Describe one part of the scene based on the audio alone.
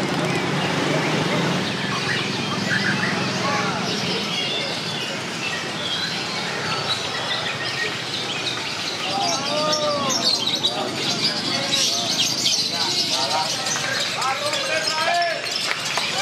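A crowd of men chatters and shouts in the open air.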